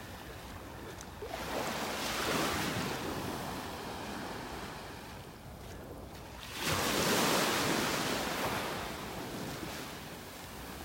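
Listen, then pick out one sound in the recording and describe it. Small waves wash gently onto the shore and recede.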